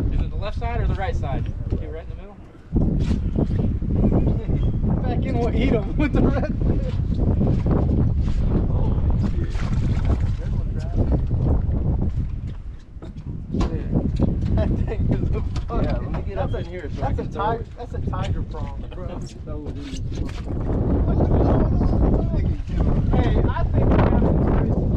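Several men talk with animation outdoors.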